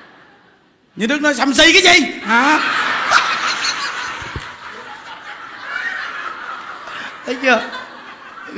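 A man laughs heartily into a microphone.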